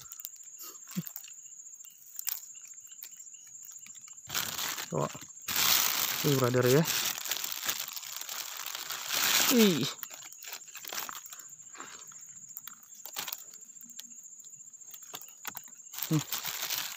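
A plastic bag rustles and crinkles as fish are handled.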